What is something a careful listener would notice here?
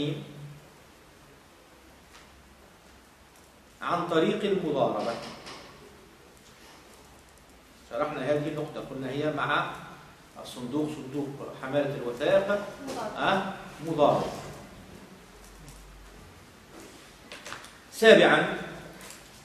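A man speaks calmly and slowly, close by, in a room with a slight echo.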